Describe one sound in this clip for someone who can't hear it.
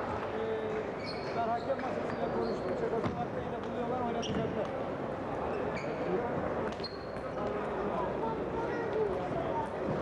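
A table tennis ball clicks sharply on bats and a table.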